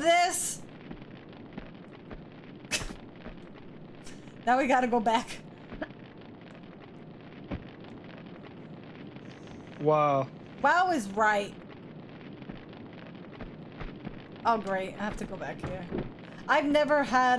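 A young woman talks into a microphone with animation, in short bursts.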